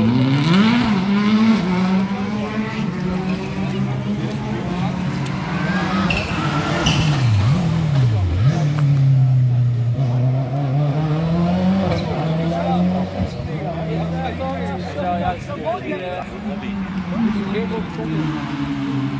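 A rally car engine roars and revs hard as the car races past nearby.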